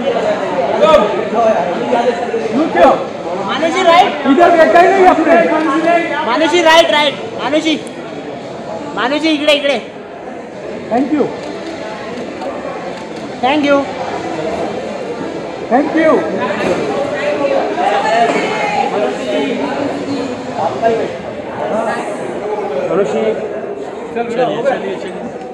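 Men and women chatter and call out nearby in a crowd.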